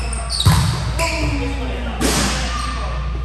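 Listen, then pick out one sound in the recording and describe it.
A volleyball is spiked with a sharp smack.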